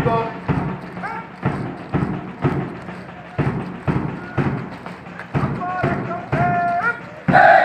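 A man shouts drill commands outdoors.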